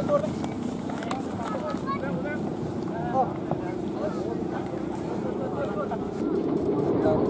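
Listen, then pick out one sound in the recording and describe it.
A crowd of young men shout and call out together outdoors.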